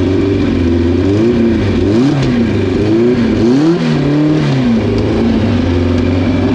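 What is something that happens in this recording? A car engine revs up and down several times in quick bursts.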